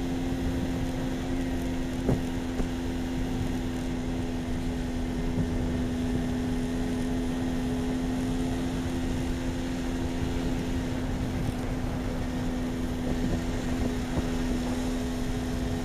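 A vehicle's engine hums at a steady pitch.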